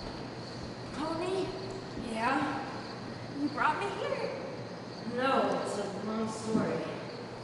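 A woman cries out loudly in a large echoing hall.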